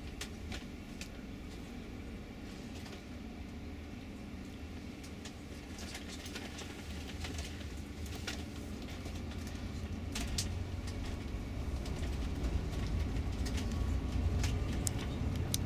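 Loose fittings rattle and click as the bus drives over the road.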